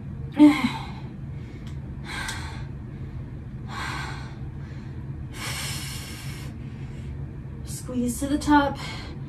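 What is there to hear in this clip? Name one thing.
A young woman speaks briefly up close.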